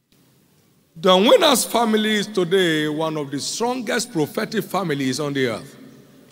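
A man preaches with energy through a microphone.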